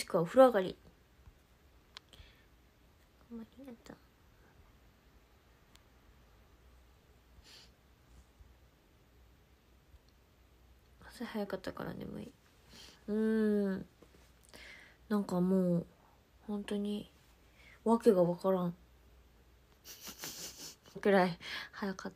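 A young woman speaks softly and casually, close to a microphone, in short bursts with pauses.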